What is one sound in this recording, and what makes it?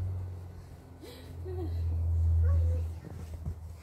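Boots crunch through deep snow as a person walks.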